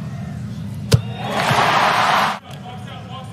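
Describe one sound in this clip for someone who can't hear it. A crowd cheers loudly for a moment.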